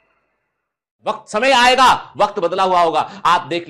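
A man speaks with animation and emphasis into a close microphone.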